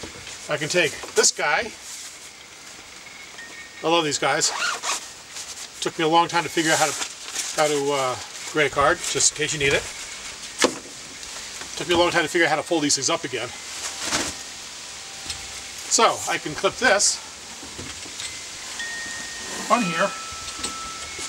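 Fabric of a folding reflector rustles and snaps as it is handled.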